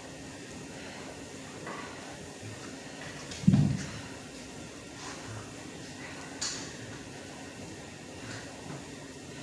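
Feet shuffle and squeak on a hard floor.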